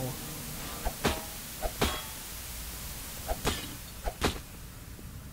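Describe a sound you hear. An axe strikes a metal machine with sharp clangs.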